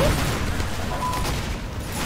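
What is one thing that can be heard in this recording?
A video game flamethrower roars.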